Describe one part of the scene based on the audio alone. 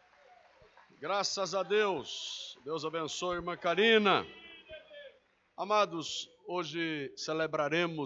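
A man preaches loudly and with animation through a microphone in a large echoing hall.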